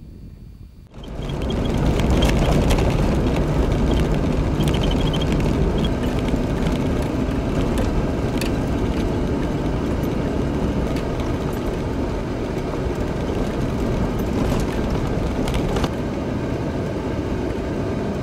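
Tyres crunch and rattle over a gravel road.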